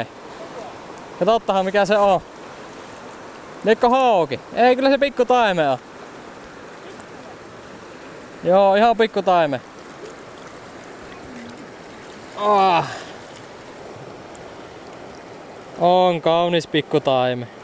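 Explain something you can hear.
A river rushes and gurgles steadily nearby.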